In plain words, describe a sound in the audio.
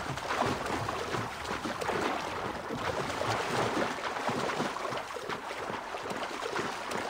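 Water splashes steadily as a swimmer strokes through it.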